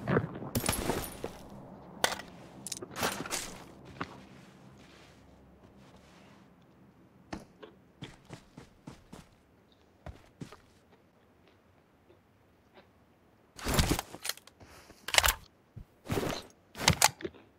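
Items are picked up with short clicking rattles.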